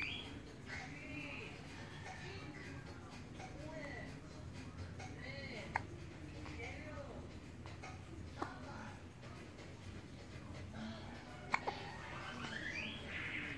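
A baby coos softly close by.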